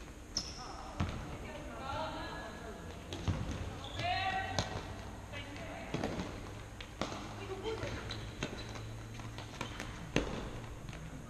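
A ball thumps off feet and walls in a large echoing hall.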